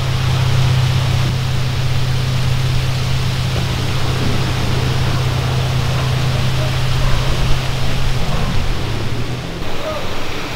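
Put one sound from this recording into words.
Sea waves wash onto a beach in the wind.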